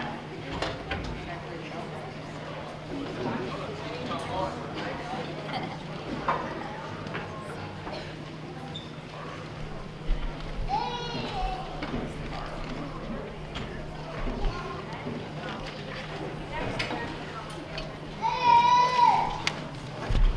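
Metal music stands and chairs clatter as they are moved.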